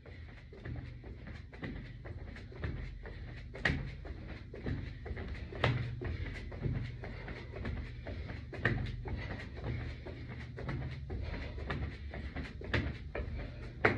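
Feet land on a hard floor in a steady rhythm of jumps.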